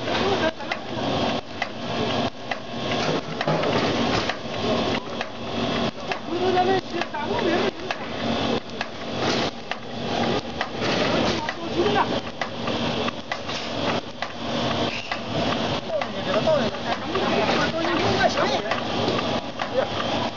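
A machine hums and clatters steadily.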